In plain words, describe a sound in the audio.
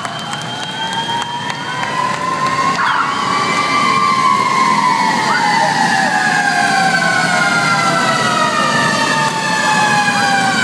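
Sirens wail loudly, slowly rising and falling in pitch.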